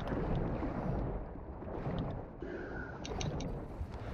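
Water swirls and bubbles underwater.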